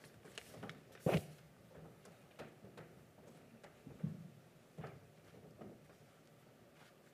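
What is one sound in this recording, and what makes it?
Things knock and bump on a table close to a microphone.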